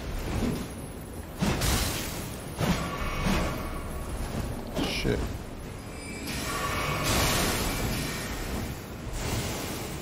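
Frost magic bursts with a hissing, crackling rush.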